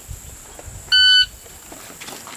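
A shot timer beeps once.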